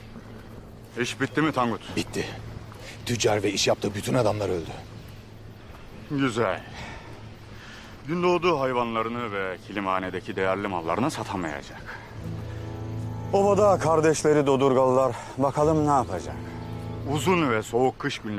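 Another man answers in a low, calm voice nearby.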